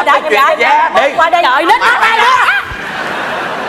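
A woman speaks with excitement into a microphone.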